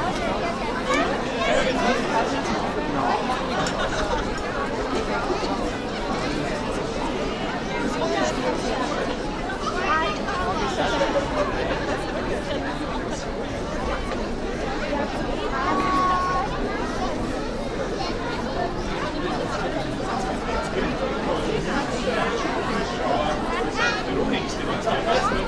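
Children's voices call out among the crowd.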